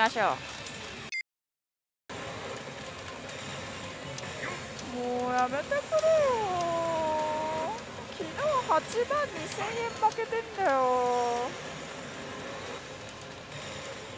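A gaming machine plays loud electronic jingles and tones.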